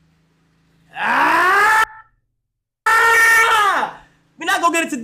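A young man shouts loudly into a microphone.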